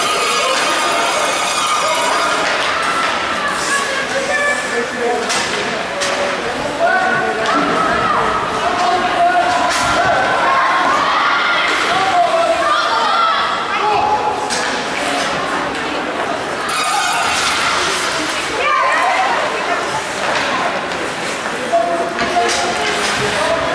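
Ice skates scrape across ice.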